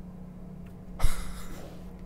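A glass bottle thumps against a body.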